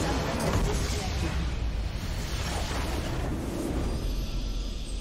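A large structure explodes with a deep rumble.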